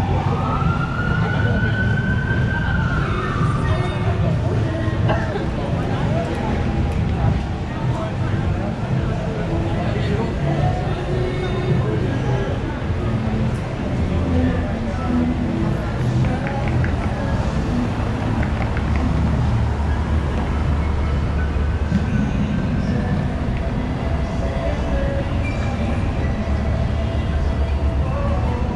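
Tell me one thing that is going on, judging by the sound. City traffic rumbles steadily on a busy street outdoors.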